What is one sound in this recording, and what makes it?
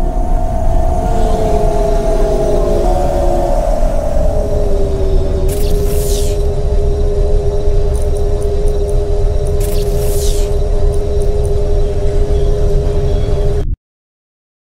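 A futuristic vehicle's engine hums steadily.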